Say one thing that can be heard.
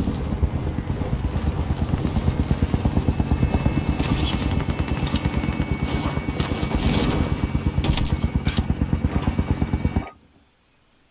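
Wind rushes and flutters loudly during a parachute descent.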